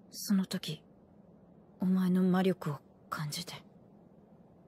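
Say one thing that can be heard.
A young woman speaks softly and gently.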